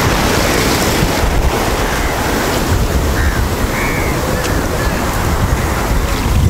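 Wind blows across an open beach.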